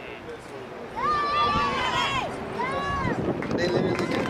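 Young women shout loudly outdoors on a sports field.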